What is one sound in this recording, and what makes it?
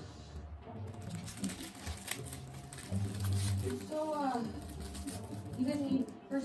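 Paper rustles as a woman handles a wrapper.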